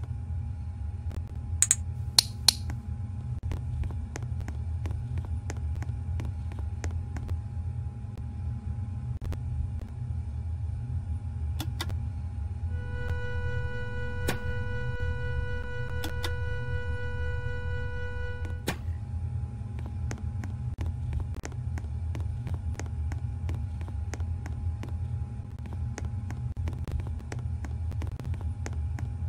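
An airplane cabin hums with a low, steady drone.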